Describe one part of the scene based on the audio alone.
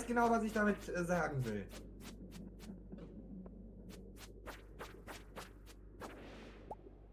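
Quick sword swipes strike a creature with sharp smacks.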